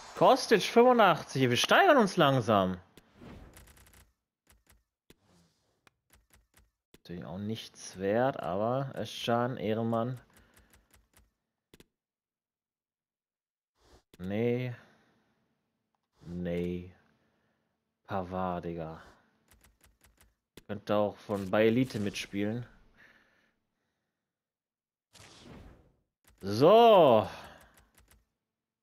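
A man talks with animation into a microphone, close by, in short bursts.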